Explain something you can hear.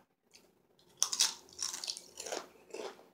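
A tortilla chip crunches loudly as a woman bites into it.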